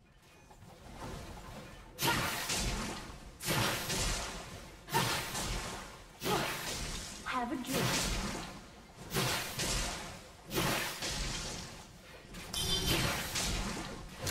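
Spells and weapons clash and burst in a game battle.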